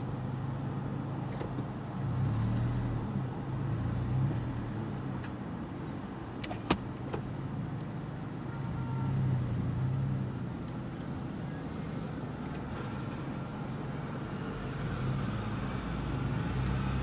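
A car engine idles with a low steady hum inside the car.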